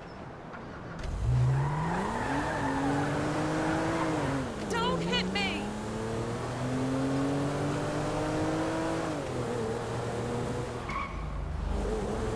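A car engine revs up as the car speeds away.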